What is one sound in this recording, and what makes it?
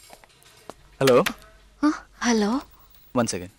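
A young man talks, close by.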